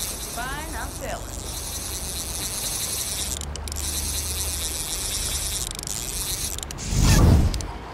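A fishing reel whirs as line is pulled in.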